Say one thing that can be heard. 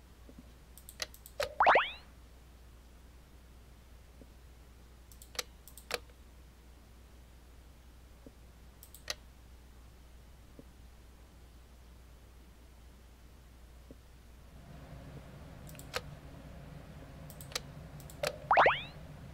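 Soft clicks sound as game tiles are picked up and dropped.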